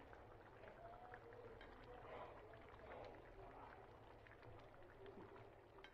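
A spatula scrapes and stirs through a thick sauce in a pan.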